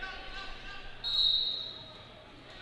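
A referee blows a short whistle.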